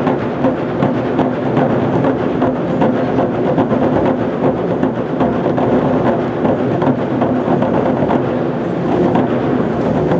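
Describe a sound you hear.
A group of drummers pounds large drums in a fast, steady rhythm.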